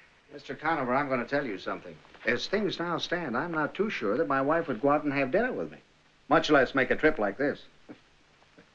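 An older man speaks with animation nearby.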